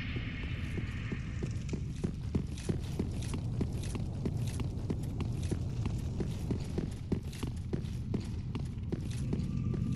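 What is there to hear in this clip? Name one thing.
Armoured footsteps clink steadily on a stone floor.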